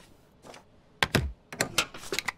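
A rubber stamp thuds down on paper.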